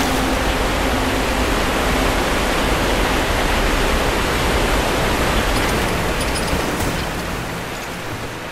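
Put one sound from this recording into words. A waterfall roars loudly nearby.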